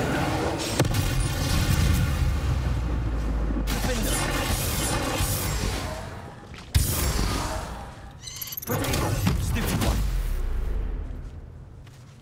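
Magic spells crackle and boom loudly.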